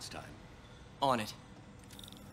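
A young man answers briefly.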